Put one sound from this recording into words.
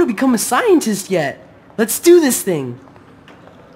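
A young woman speaks softly and encouragingly, close by.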